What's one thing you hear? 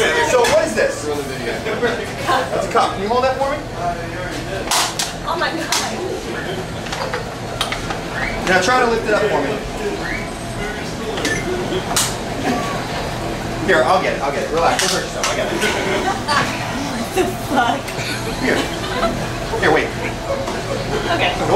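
A crowd chatters and laughs in a noisy room.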